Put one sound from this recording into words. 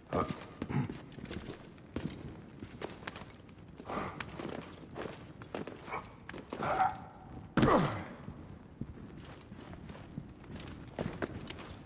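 Hands and boots scrape and thud while climbing a stone wall.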